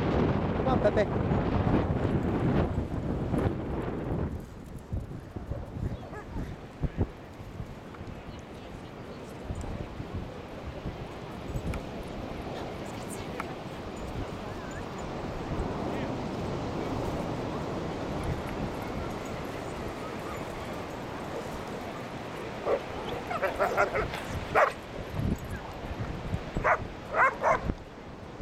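Waves wash onto the shore in a steady rush.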